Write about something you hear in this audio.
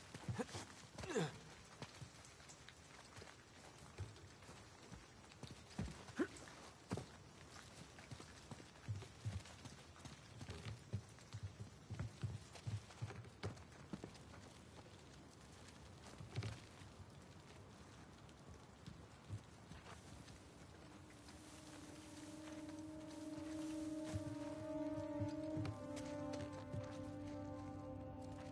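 Footsteps run across a floor.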